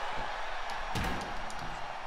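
A heavy metal object slams down with a loud clang.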